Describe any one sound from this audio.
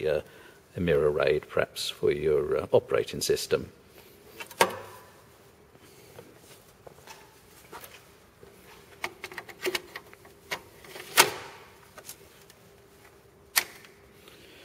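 Plastic parts click and knock against a metal case.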